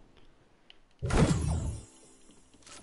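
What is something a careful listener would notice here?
A game character lands with a heavy thud.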